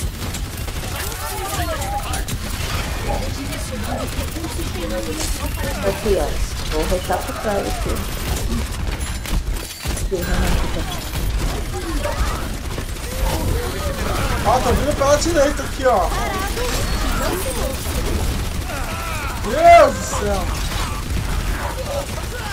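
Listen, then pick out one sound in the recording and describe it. Game weapons fire in rapid bursts.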